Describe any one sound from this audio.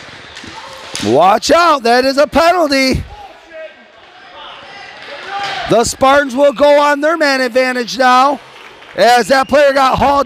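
Spectators close by shout and cheer loudly.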